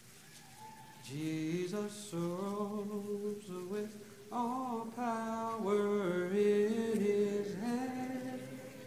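A man reads aloud calmly through a microphone.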